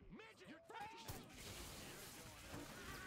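An electric energy weapon crackles and zaps.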